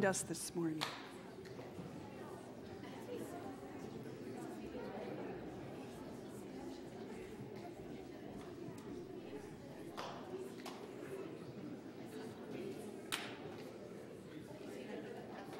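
A crowd of men and women chatter and greet one another in a large echoing hall.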